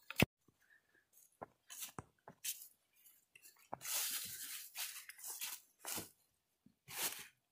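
Dry leaves crunch underfoot with each footstep.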